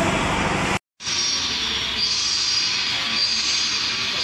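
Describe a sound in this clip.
Factory machinery hums steadily in a large echoing hall.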